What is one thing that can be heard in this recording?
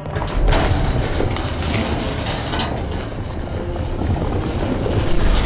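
Heavy doors grind slowly open with a deep rumble.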